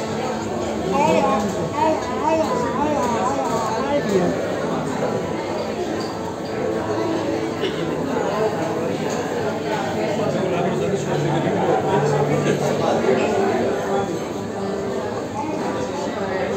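A crowd of men and women chatters all around in a busy room.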